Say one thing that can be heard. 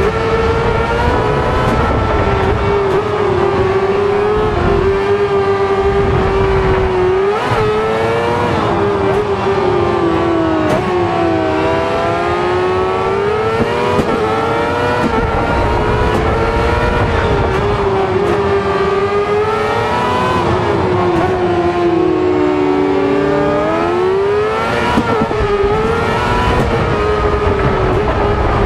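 Tyres skid and scrabble on loose gravel.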